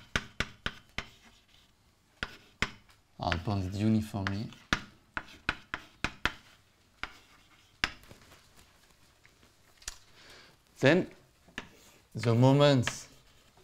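Chalk taps and clicks sharply on a blackboard.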